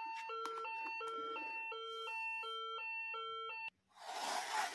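A toy plays a bright electronic beeping tune.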